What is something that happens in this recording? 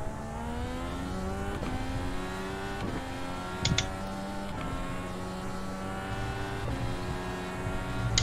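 A racing car engine whines at high revs, rising through each gear and dropping at each shift.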